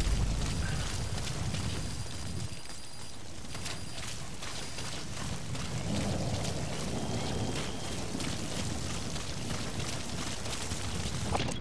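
Footsteps rustle quickly through dry grass.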